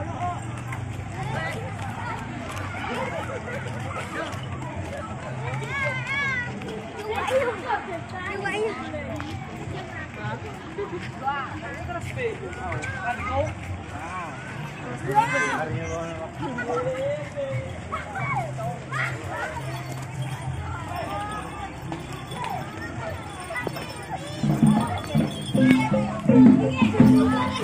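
Children shout and chatter excitedly outdoors.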